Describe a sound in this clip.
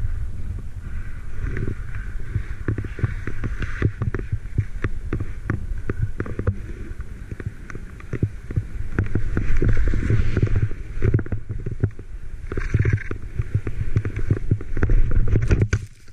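Wind buffets the microphone in loud rumbling gusts.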